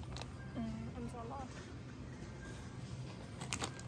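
A plastic bag crinkles in a hand.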